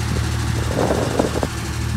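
An engine generator hums steadily.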